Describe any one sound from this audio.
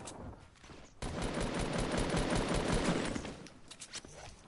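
A gun fires in a rapid burst of shots.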